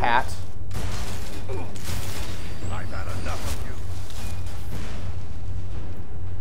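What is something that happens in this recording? Fire spells roar and crackle in bursts.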